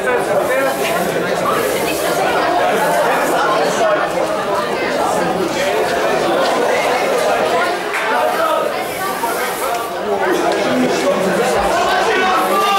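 Boxing gloves thud against bodies and gloves.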